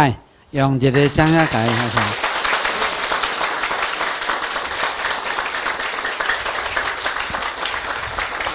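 An audience claps and applauds.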